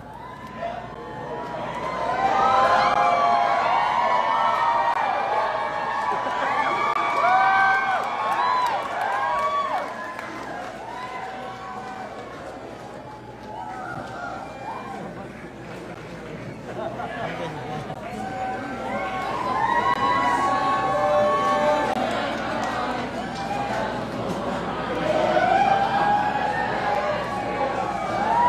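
A large crowd shouts and cheers loudly in a big echoing hall.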